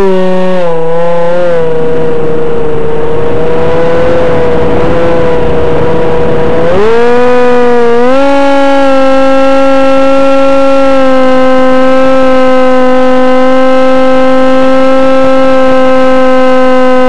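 Small electric propeller motors whine loudly up close, their pitch rising and falling.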